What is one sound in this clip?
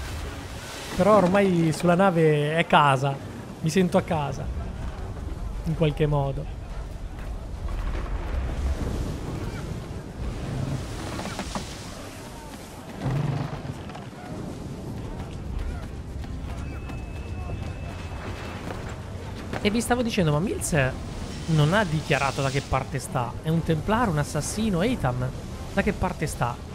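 Heavy rain pours down in a strong wind.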